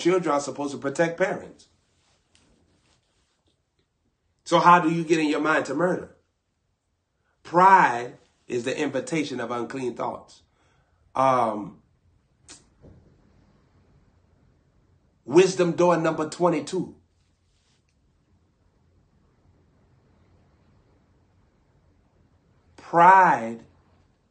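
A young man speaks with animation close to a microphone, in short bursts with pauses.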